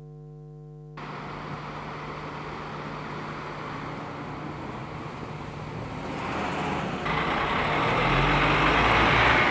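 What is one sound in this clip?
Traffic rumbles steadily outdoors.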